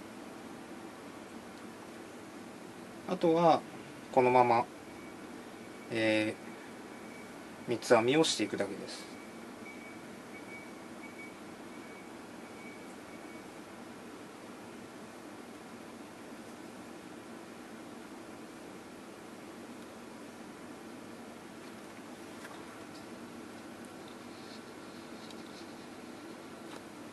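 Hair rustles softly as it is braided by hand.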